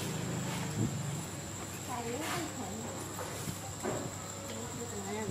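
A small monkey chews and munches on watermelon.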